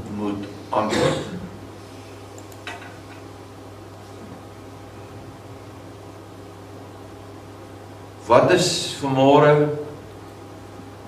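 An older man speaks slowly and deliberately into a microphone, with long pauses.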